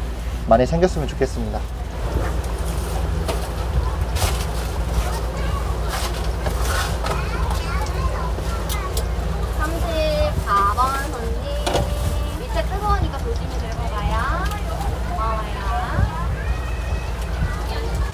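Hot oil sizzles steadily in a deep fryer.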